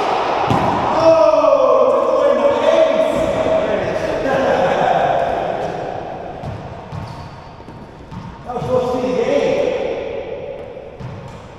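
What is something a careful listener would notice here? Men talk with one another in an echoing room.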